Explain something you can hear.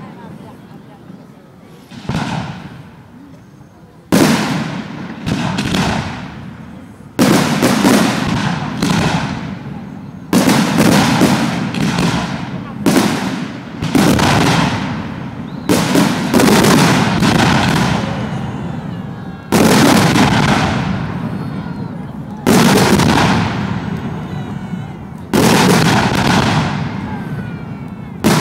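Fireworks crackle and sizzle as sparks fall.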